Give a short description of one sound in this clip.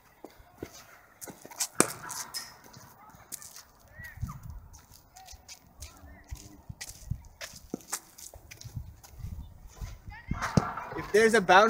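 Footsteps run over artificial turf.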